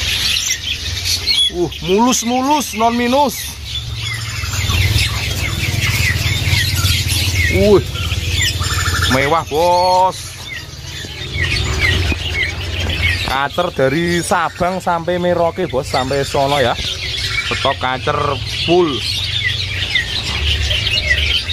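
Many small birds chirp and twitter rapidly nearby.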